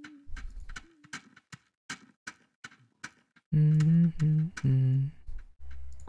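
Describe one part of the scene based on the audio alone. Short footsteps patter quickly on soft ground.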